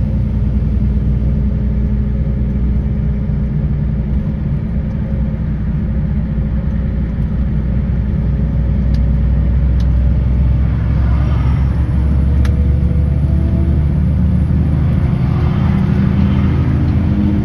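A car engine drones steadily from inside the car.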